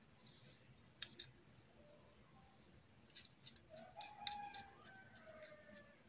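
Plastic circuit boards click and clack as they are fitted together by hand.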